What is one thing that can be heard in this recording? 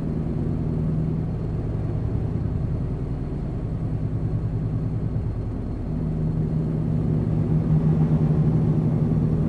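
Tyres roll along a highway.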